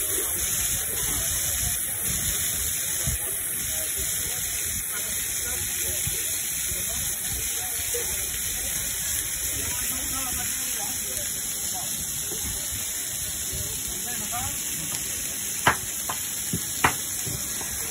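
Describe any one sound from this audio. Meat sizzles and crackles on a hot griddle.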